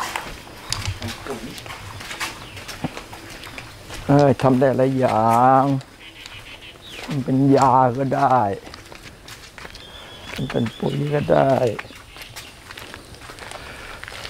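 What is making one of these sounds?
Sandals shuffle and scuff on stone underfoot.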